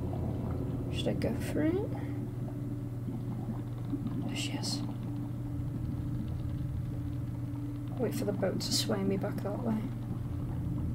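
A young woman speaks briefly and quietly into a headset microphone.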